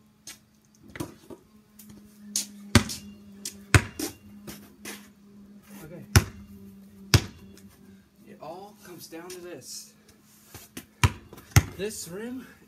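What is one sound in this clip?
A basketball bounces sharply on concrete.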